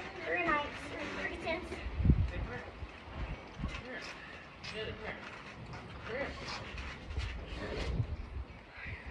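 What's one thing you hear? A trampoline thumps dully as a child bounces on it.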